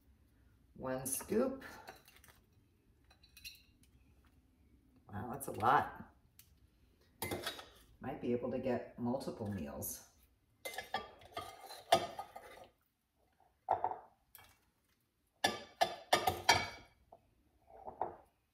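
A pepper grinder grinds with a dry rasping.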